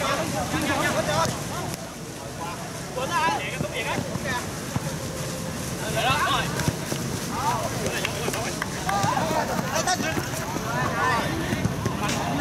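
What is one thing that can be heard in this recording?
Young men shout and call to each other across an outdoor pitch.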